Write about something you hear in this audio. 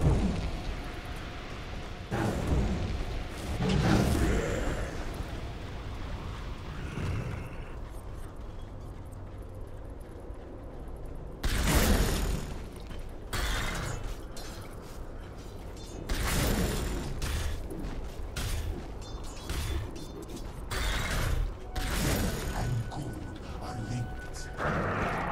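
Fiery spell effects whoosh and crackle in bursts.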